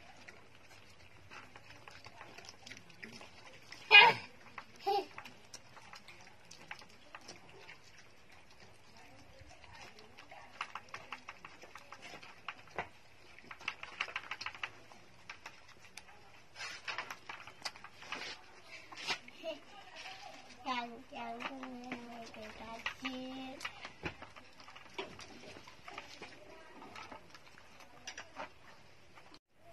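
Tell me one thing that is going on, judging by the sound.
Puppies suckle with wet smacking sounds close by.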